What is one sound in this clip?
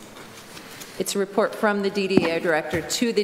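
A woman speaks calmly into a microphone.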